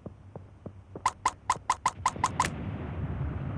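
A rapid series of short chiming pings sounds.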